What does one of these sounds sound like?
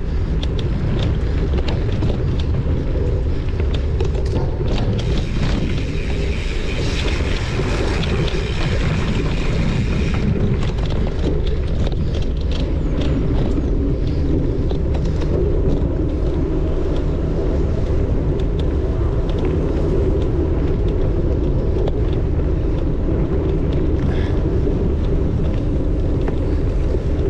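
Wind rushes past close by.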